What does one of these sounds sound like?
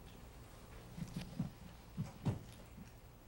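A chair thumps and creaks as a man sits down.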